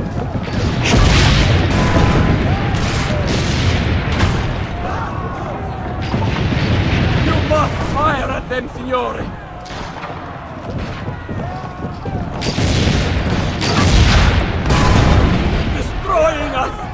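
Cannons fire with loud, deep booms.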